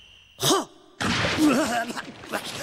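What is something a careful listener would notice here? Water splashes loudly as a swimmer swims.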